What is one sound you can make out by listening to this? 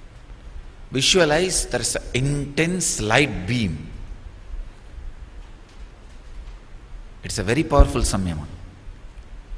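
A man speaks calmly into a microphone in short phrases.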